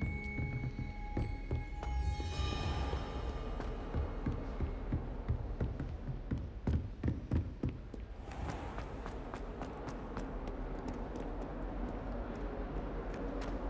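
Quick footsteps run across hard floors.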